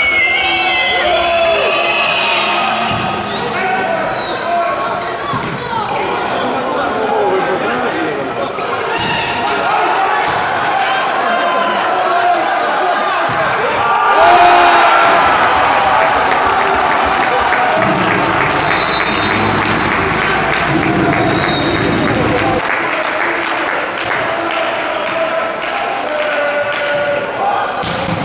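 Players shout and call out to each other in a large echoing hall.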